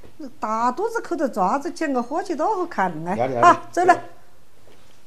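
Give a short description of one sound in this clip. A middle-aged woman talks animatedly close by.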